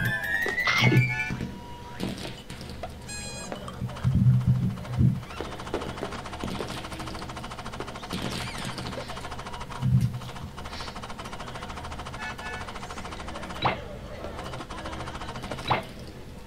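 Cartoon sound effects boing and chime as a character jumps.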